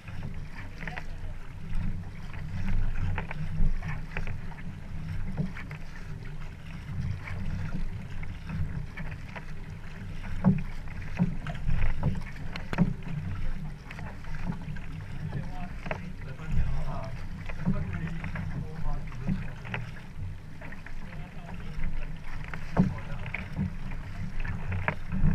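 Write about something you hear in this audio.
Paddles splash and churn through the water in a steady rhythm.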